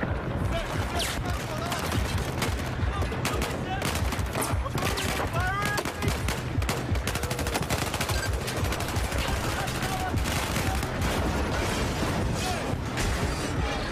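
Assault rifles fire in rapid bursts.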